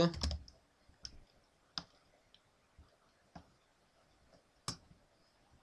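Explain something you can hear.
A computer mouse clicks several times, sharp and close.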